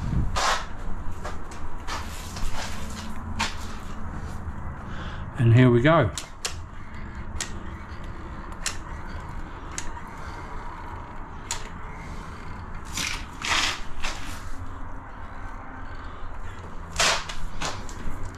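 A caulking gun clicks as its trigger is squeezed.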